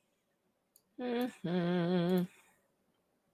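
A woman makes a drawn-out, wavering hum close to a microphone.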